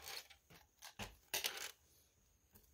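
Small plastic bricks click as they are pressed together.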